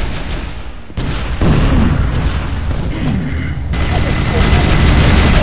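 Energy gun blasts fire rapidly with heavy booms.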